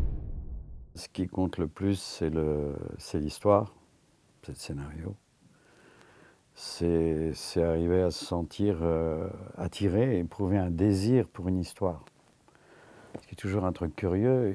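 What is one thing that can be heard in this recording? An elderly man speaks calmly and thoughtfully, close to a microphone.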